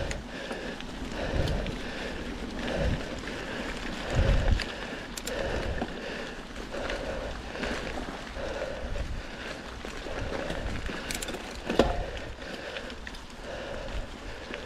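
Bicycle tyres roll and crunch over dry fallen leaves.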